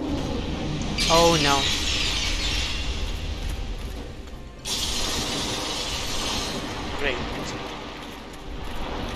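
A blast of icy breath hisses and rushes.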